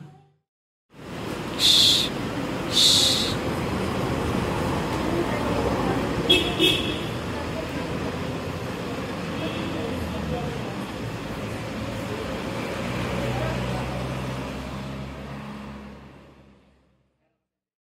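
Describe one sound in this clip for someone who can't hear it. Traffic hums along a road outdoors.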